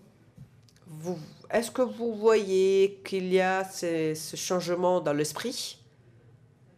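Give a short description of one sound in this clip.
A young man speaks calmly into a handheld microphone.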